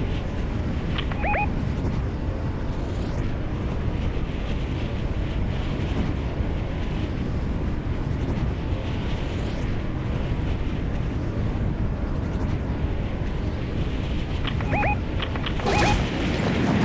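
Wind rushes steadily past during a high glide.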